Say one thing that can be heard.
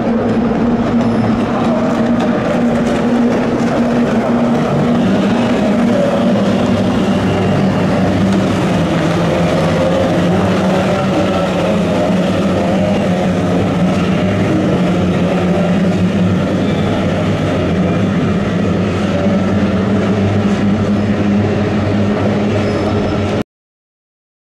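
Racing boat engines drone loudly as boats speed across the water.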